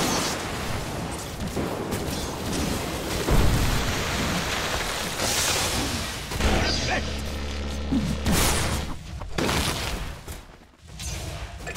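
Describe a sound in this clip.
Impacts thud as attacks land.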